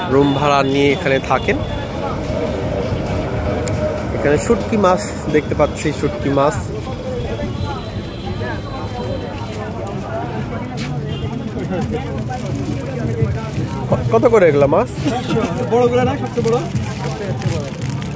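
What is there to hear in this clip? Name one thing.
Men talk close by with animation.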